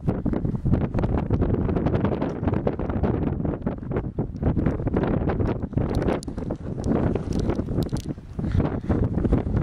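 Wind blows hard against the microphone outdoors.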